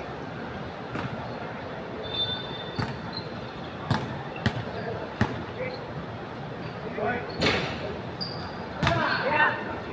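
A basketball bounces now and then on a hard outdoor court.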